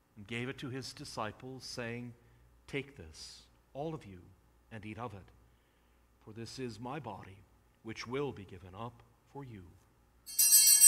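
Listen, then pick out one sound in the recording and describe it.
An elderly man speaks slowly and solemnly into a microphone.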